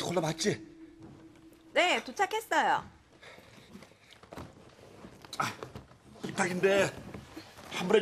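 A young woman talks animatedly on a phone, close by.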